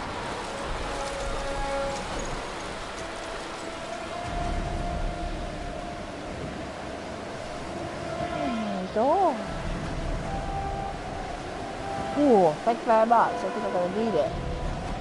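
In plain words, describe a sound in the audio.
Wind howls and gusts through a snowstorm.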